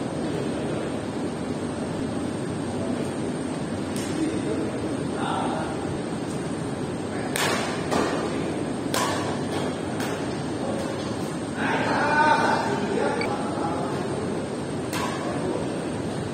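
A large echoing hall is filled with a steady murmur of players.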